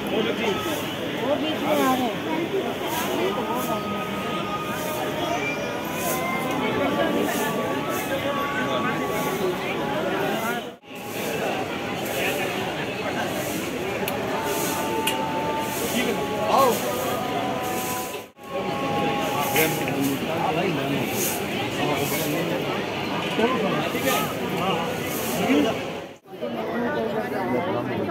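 A crowd of men and women chatter and call out all around, close by.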